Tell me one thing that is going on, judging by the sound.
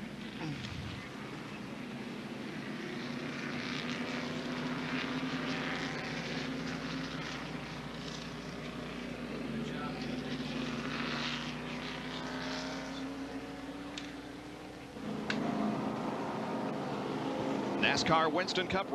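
Racing car engines roar and whine as cars speed along a track.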